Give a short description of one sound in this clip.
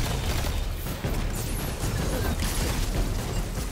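A rapid-fire gun shoots in quick bursts.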